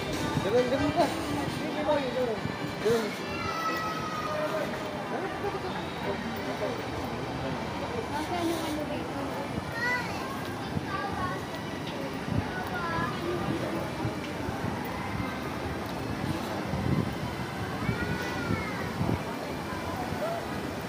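Footsteps tap on a walkway.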